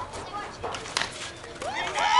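A metal bat cracks against a softball.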